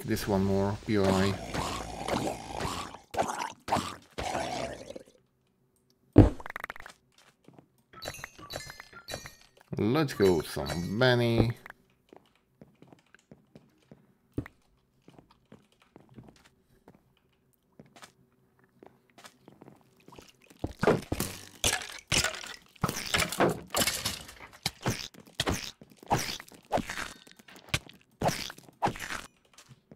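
Sword blows strike creatures in quick, sharp hits.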